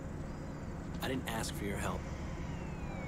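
A young man answers curtly.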